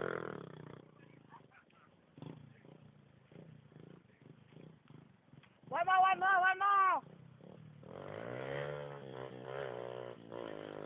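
A motorcycle engine hums and revs nearby.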